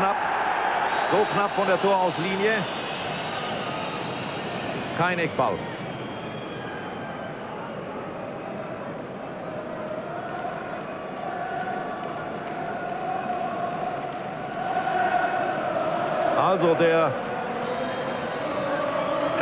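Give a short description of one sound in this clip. A large stadium crowd roars and chants steadily, swelling louder toward the end.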